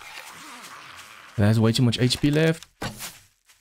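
A bowstring creaks as it is drawn back.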